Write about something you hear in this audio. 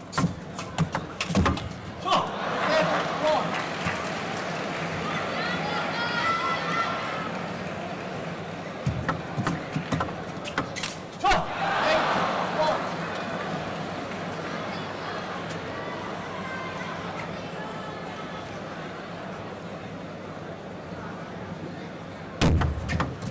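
A table tennis ball clicks rapidly back and forth off paddles and a table.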